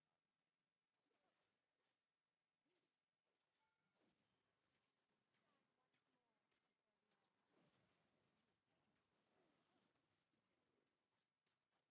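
Magic spell effects whoosh and crackle in quick bursts.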